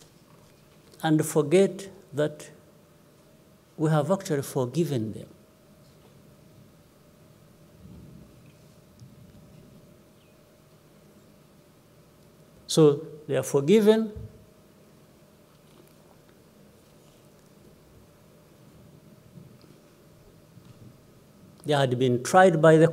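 A man speaks slowly and calmly into a microphone, in short phrases with long pauses, his voice echoing slightly.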